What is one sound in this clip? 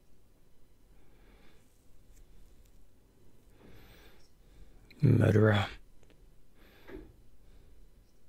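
A man speaks briefly and quietly into a microphone, close by.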